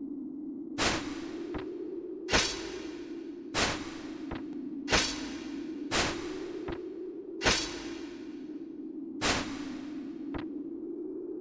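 A spear strikes the ground with loud, ringing blows, over and over.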